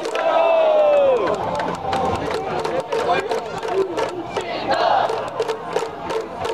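Many people clap in rhythm.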